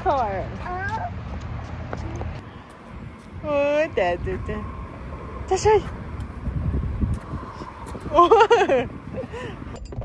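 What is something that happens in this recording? A little girl babbles and giggles close by.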